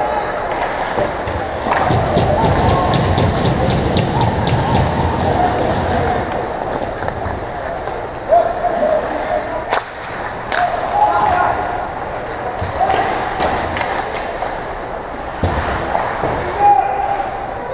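Hockey sticks clack against the puck and ice.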